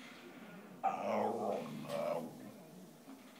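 A dog growls playfully up close.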